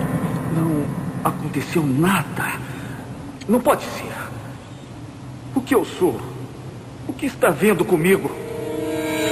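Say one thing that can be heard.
A man speaks slowly in a deep, echoing voice.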